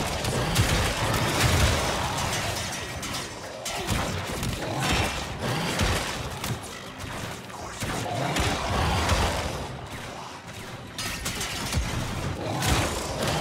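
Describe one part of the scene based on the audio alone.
Metal blades slash and clang.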